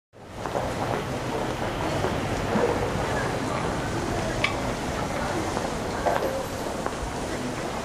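Footsteps tap on a paved walkway.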